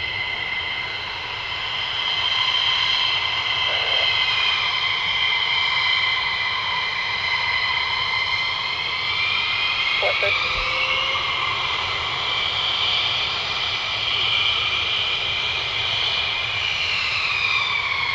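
A jet engine whines loudly and steadily, shifting in pitch as the aircraft taxis.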